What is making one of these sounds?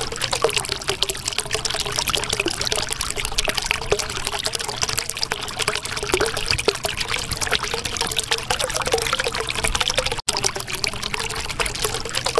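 Water bubbles and gurgles steadily.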